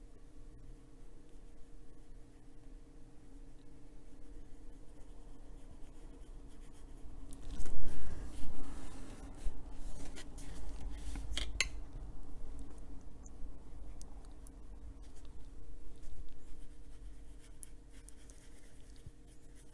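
A paintbrush brushes softly across paper.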